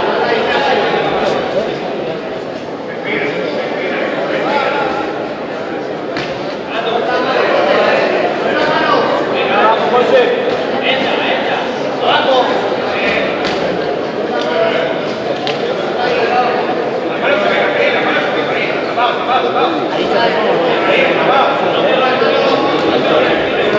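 A crowd in a large echoing hall shouts and cheers throughout.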